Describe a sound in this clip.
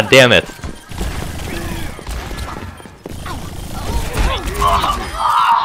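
A revolver fires sharp shots in quick succession.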